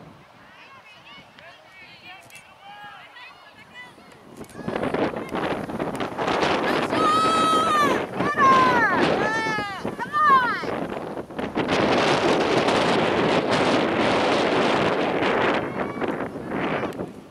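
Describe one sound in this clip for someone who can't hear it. Girls on a field shout and call out to each other in the distance.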